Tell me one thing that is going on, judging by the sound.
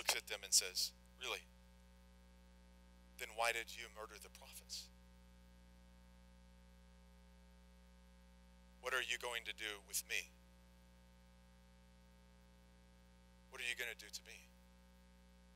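A man speaks calmly in short phrases with long pauses, heard through a microphone in a large room.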